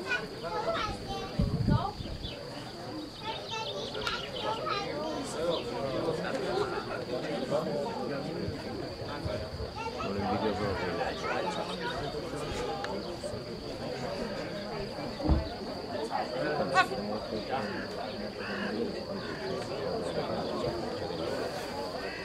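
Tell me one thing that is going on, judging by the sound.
A crowd of spectators murmurs and chatters outdoors.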